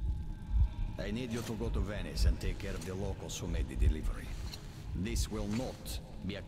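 A man speaks in a low, stern voice.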